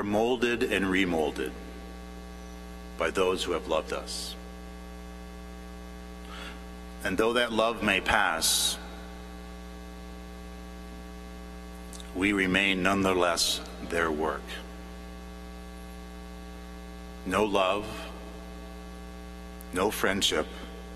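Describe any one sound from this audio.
A man speaks slowly and solemnly through a microphone in a large echoing hall, pausing between phrases.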